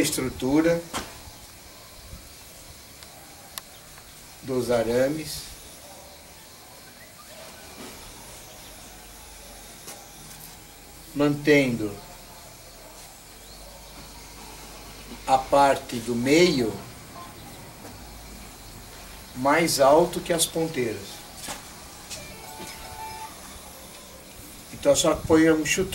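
An elderly man speaks calmly nearby in short bursts with pauses.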